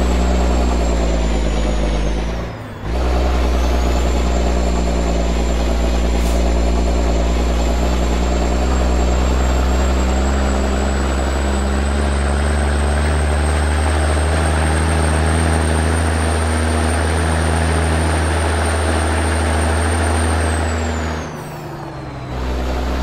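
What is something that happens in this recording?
A heavy truck engine drones loudly and steadily.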